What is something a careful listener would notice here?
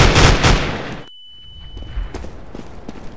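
A steady high ringing tone sounds after a stun blast.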